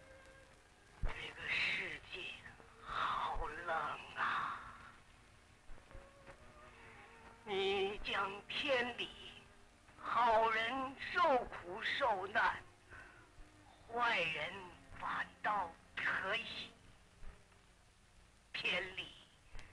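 An elderly man speaks slowly and earnestly, close by.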